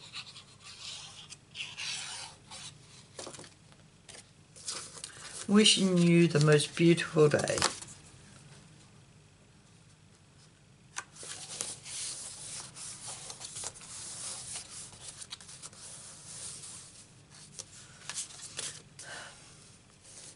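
Stiff paper cards rustle and slide against each other on a table.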